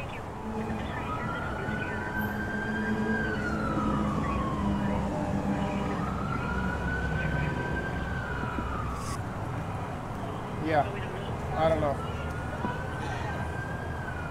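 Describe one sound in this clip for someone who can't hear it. A siren wails nearby, rising and falling slowly.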